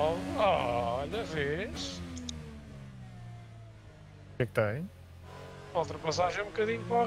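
An open-wheel race car engine drops in pitch as it downshifts.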